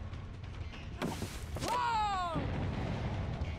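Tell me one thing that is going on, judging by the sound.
Wooden boards crash down and splinter.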